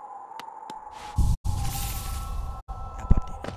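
A soft rushing shimmer sounds briefly.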